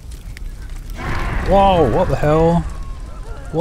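Fire bursts and roars.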